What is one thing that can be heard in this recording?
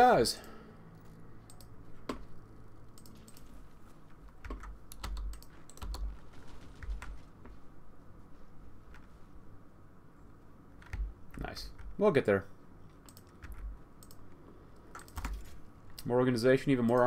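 Short interface clicks sound as game menus open and close.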